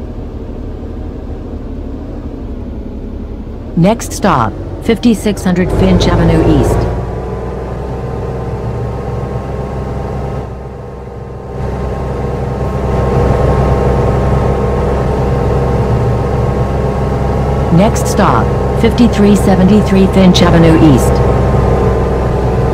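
A bus engine hums steadily and rises in pitch as it speeds up.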